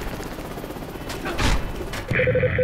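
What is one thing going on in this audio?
A heavy gun fires a loud burst.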